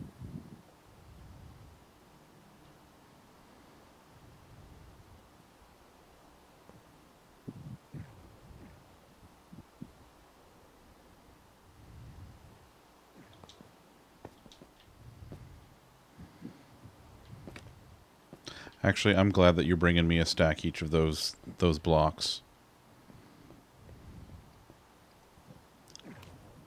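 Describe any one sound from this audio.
A man talks quietly into a microphone, with pauses.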